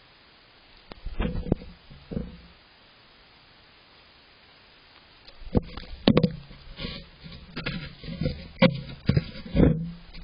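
A fox's fur brushes and bumps against the microphone close up.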